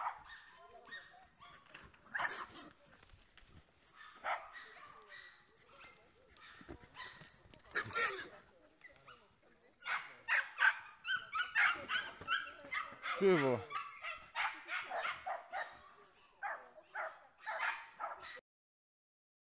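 Hunting dogs bark excitedly.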